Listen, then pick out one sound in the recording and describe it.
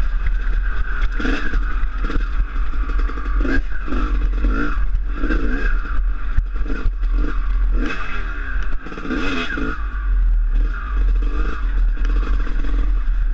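A dirt bike engine revs and drones up close.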